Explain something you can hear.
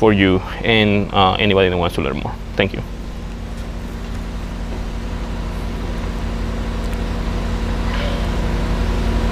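A diesel truck engine idles with a steady low rumble.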